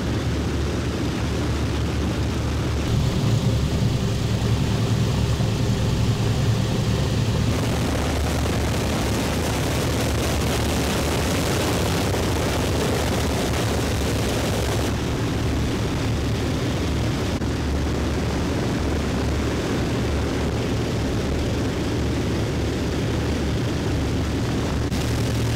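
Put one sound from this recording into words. Propeller engines drone loudly and steadily.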